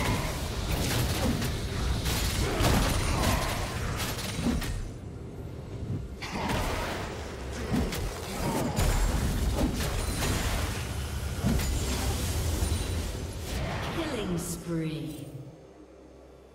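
Magic spells blast and crackle in rapid bursts.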